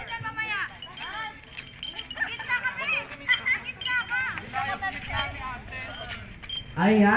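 A group of young men and women talk and laugh outdoors.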